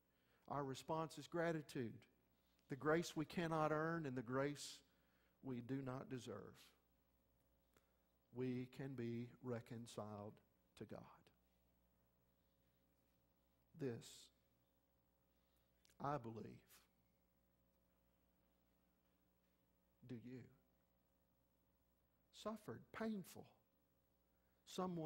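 A middle-aged man speaks slowly and deliberately through a microphone, with long pauses.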